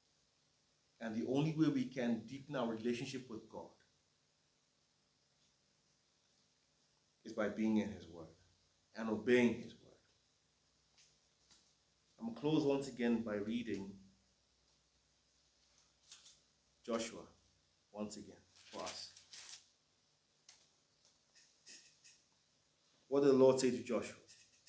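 A man reads aloud calmly, close by, in short phrases with pauses.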